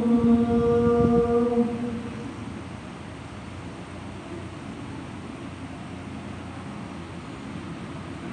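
Electric fans whir steadily.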